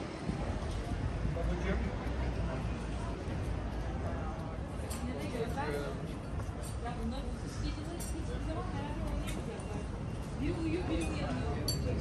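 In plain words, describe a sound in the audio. Men and women chat at outdoor tables nearby.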